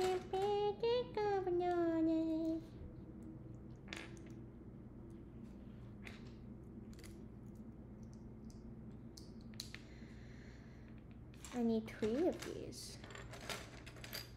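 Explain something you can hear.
Small plastic pieces click and rattle.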